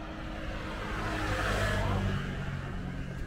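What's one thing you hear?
A motorbike engine hums as it passes by on a road.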